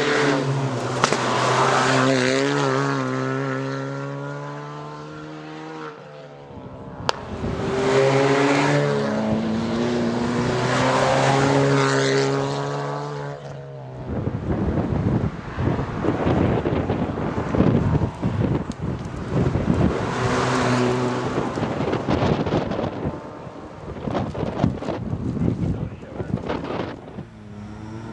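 A rally car engine roars and revs hard as it speeds past.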